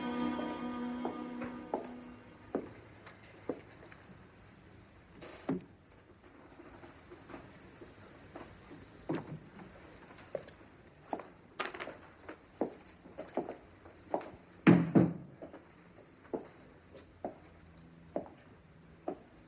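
A man's footsteps tap on a hard floor in an echoing room.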